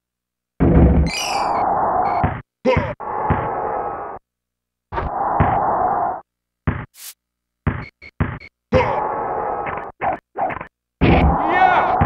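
A crowd cheers and roars in bursts.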